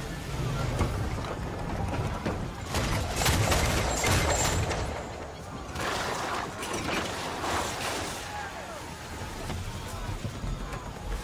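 Waves wash against a ship's hull.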